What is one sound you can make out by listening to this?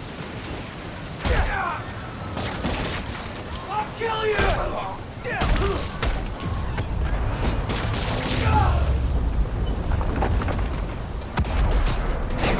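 Heavy blows and impacts thud and crash.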